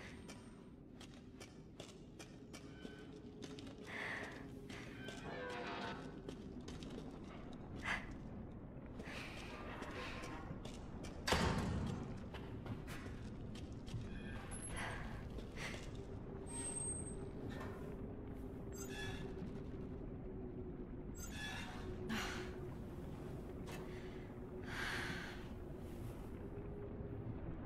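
Footsteps scuff slowly across a stone floor in an echoing space.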